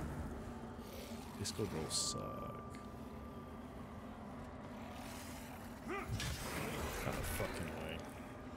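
A sword swishes and clangs in a game fight.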